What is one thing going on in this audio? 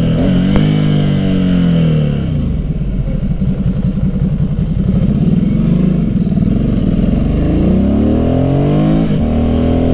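A motorcycle engine revs up and down, loud and close.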